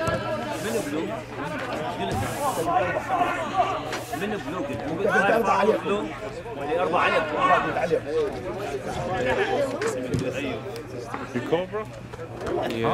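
Men shout and call to each other outdoors.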